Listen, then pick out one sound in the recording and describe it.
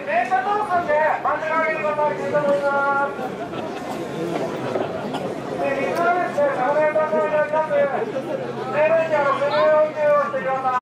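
A crowd murmurs and shouts in the background.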